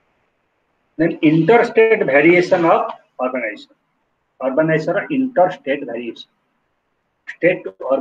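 A middle-aged man speaks calmly, close to a microphone on an online call.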